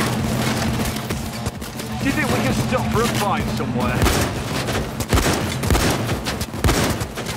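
Gunshots fire in rapid bursts, close by.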